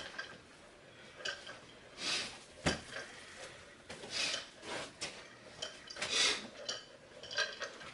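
Carpet is dragged and rustles across a floor.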